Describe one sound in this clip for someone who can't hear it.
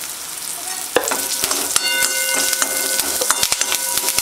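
Fresh leaves crackle and spit loudly as they hit hot oil.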